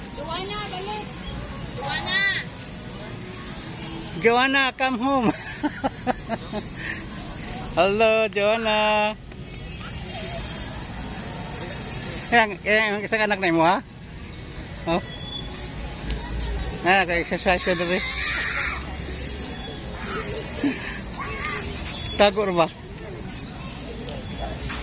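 Young women talk and laugh close by, outdoors.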